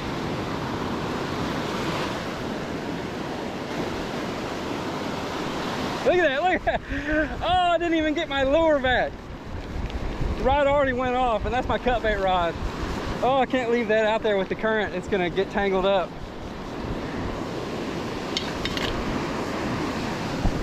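Waves break and wash steadily onto a beach nearby.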